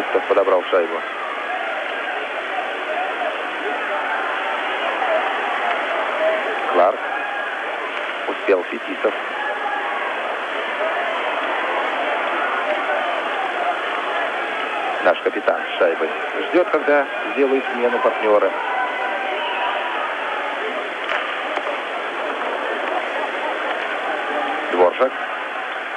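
Hockey sticks clack against a puck now and then.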